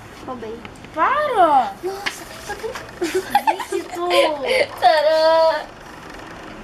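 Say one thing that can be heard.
A girl laughs excitedly.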